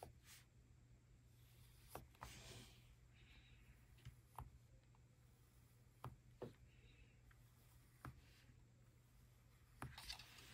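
A pencil scratches lightly across paper.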